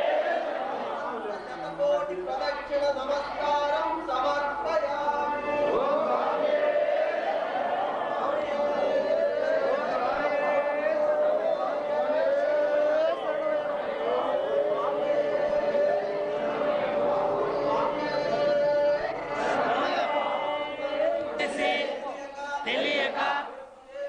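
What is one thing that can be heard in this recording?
A crowd of men chant together in unison.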